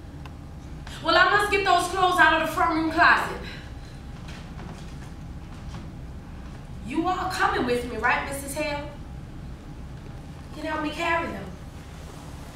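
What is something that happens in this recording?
A woman speaks with feeling on a stage, heard from across a large room.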